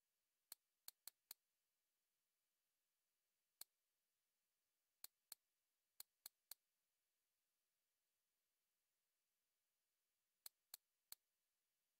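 Short, sharp menu clicks sound in quick bursts.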